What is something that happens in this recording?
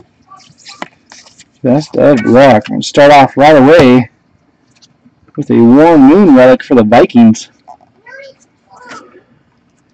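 Trading cards rustle and slide as hands handle them.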